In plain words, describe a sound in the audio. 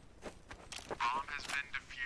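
A rifle rattles as it is handled.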